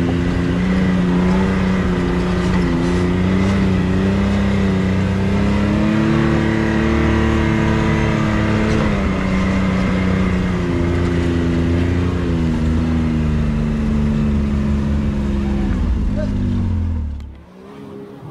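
An off-road vehicle's engine roars loudly and steadily, rising and falling as it drives.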